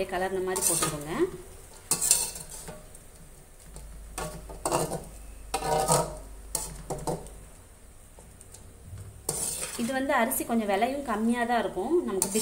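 A metal spatula scrapes and clatters against a metal pan.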